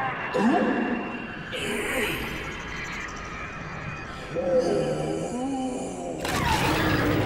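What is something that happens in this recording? An energy blade hums and crackles.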